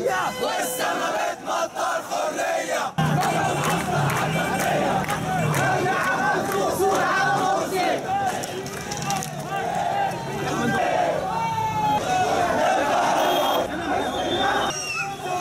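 A large crowd of men chants loudly outdoors.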